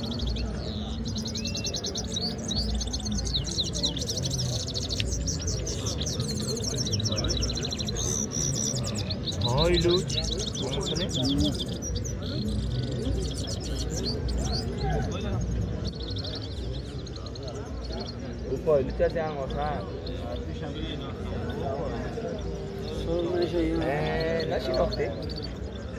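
Caged finches sing fast, twittering trills close by.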